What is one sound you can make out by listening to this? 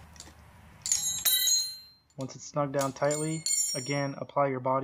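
A metal wrench clinks against a tube with a ringing tone.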